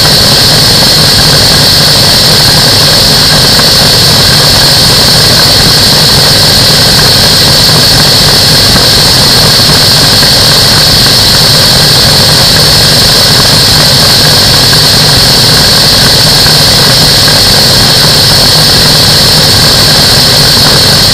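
A small engine drones steadily with a buzzing propeller.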